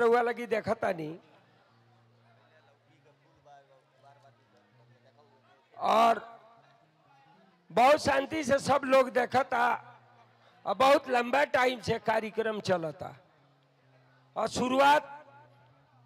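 A man sings loudly into a microphone, heard through loudspeakers, in long drawn-out phrases with pauses.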